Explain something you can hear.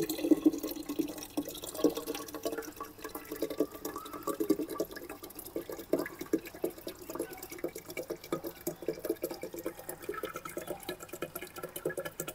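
Coconut water trickles into a glass.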